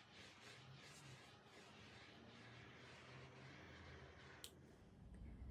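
A small gas torch hisses softly.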